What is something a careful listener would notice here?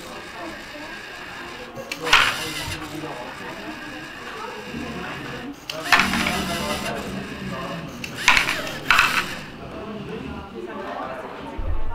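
A small electric motor whirs in short bursts.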